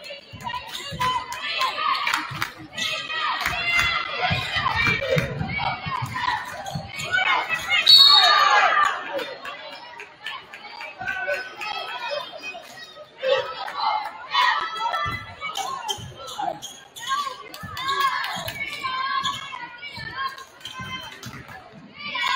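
A crowd cheers and chatters in a large echoing gym.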